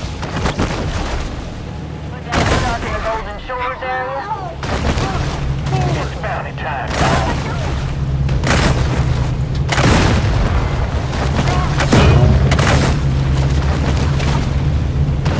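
Water splashes and churns as a large animal swims fast.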